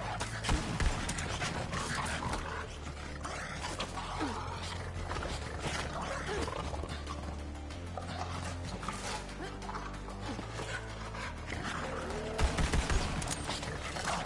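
Creatures snarl and growl.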